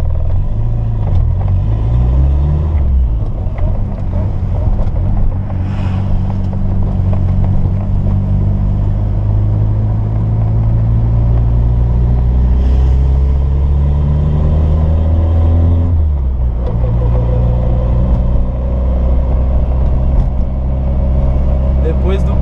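A car engine revs up and down loudly as the car accelerates through the gears.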